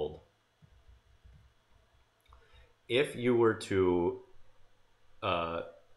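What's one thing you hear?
A man speaks calmly and explains into a close microphone.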